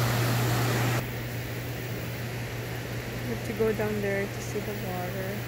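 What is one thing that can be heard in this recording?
A river flows steadily nearby.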